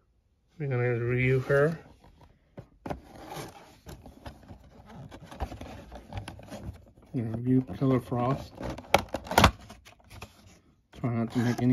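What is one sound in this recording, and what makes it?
Fingers tap and rub against a cardboard box.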